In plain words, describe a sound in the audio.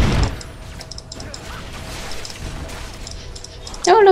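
Soft interface clicks tick in quick succession.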